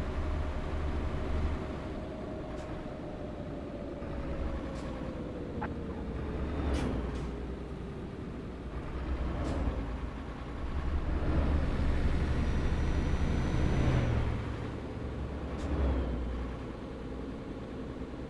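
A truck engine rumbles steadily as it drives along a road.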